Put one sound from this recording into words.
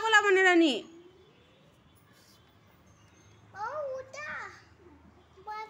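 A toddler babbles and squeals nearby.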